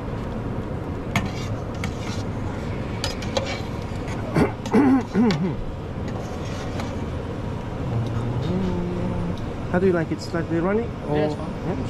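A metal spoon clinks against a pan.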